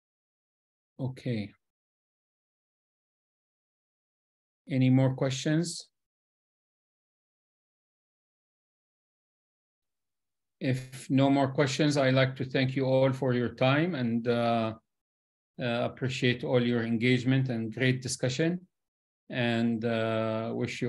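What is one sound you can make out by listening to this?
A middle-aged man speaks calmly over an online call, with pauses.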